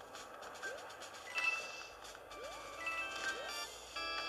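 Bright coin chimes ring out in quick bursts.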